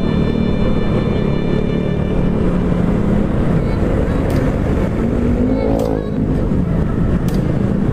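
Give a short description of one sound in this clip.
Other motorcycles' engines buzz nearby.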